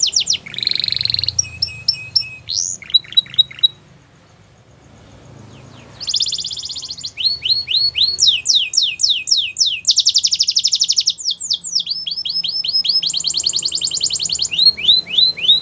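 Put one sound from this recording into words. A canary sings close by in loud, rapid trills and chirps.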